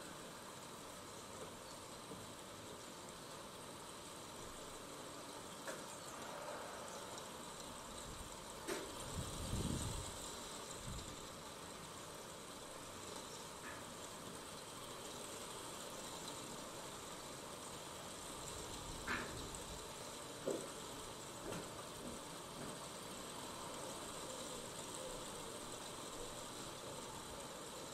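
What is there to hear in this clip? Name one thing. A river flows gently over stones outdoors.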